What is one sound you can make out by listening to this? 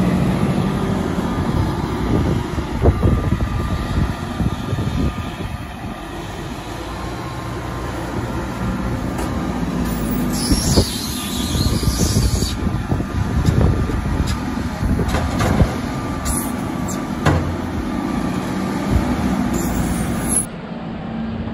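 A loader's diesel engine rumbles and revs close by.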